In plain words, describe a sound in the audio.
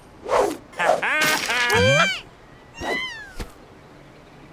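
Cartoon birds squawk and chirp in quick, rising and falling cries.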